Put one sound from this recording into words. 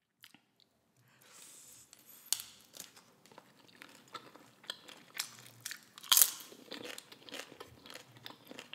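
A woman crunches tortilla chips close to a microphone.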